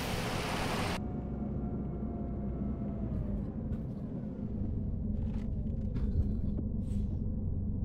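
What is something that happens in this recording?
A bus engine hums softly, muffled from inside the cab.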